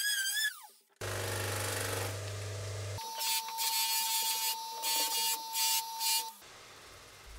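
A bench grinder whirs loudly as a metal bar is polished against its wheel.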